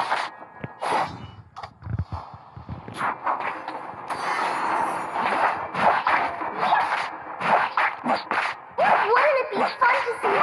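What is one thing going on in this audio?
Game sound effects of spells and hits ring out in quick bursts.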